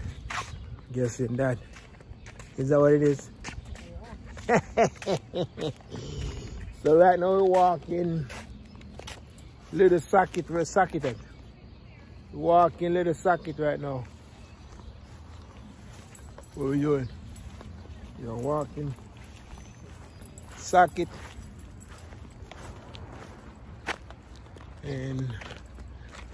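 A man talks with animation close to the microphone, outdoors.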